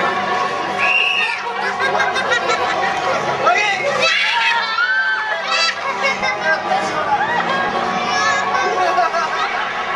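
A young girl laughs and squeals excitedly nearby.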